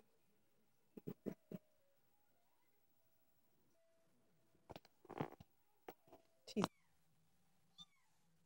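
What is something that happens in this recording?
A small kitten mews in short, high cries.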